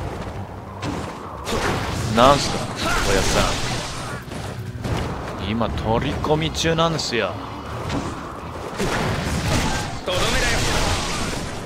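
Explosive blasts burst and crackle.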